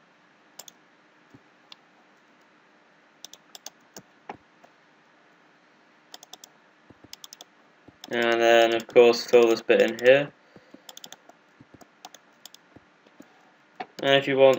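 Blocks click softly as they are placed, one after another.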